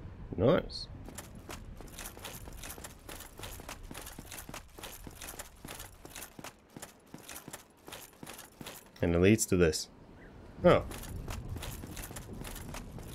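Armoured footsteps run quickly on stone.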